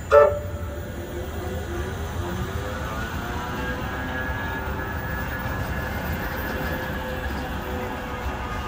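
A tram's electric motor whines, rising in pitch as it pulls away.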